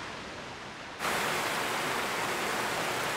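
Water gushes and roars loudly.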